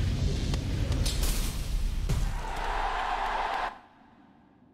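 A sword slashes with a sharp swoosh.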